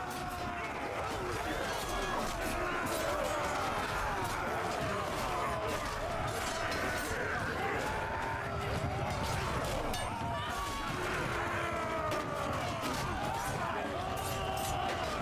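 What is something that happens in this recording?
Metal weapons clash and clang repeatedly.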